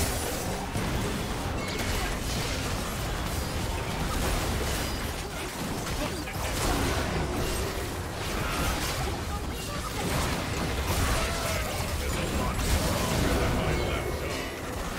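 Fantasy combat sound effects crackle, whoosh and clash in a video game.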